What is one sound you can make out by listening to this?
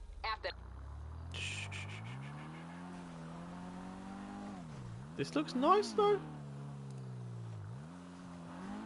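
A car engine revs and hums as the car drives off.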